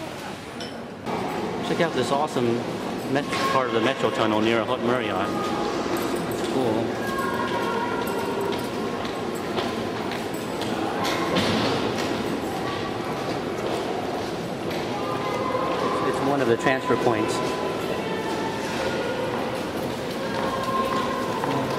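Footsteps echo on a hard floor.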